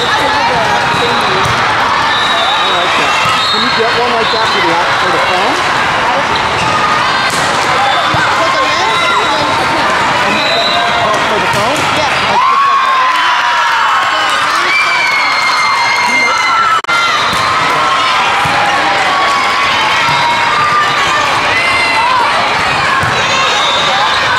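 A crowd of voices murmurs and calls out in a large echoing hall.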